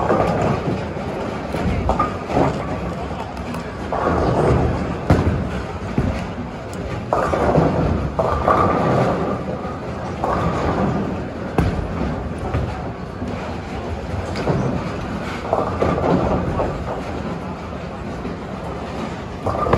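A crowd of bowlers murmurs and talks in the background.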